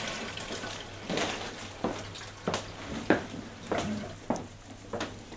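Footsteps tap on a hard floor in an echoing room.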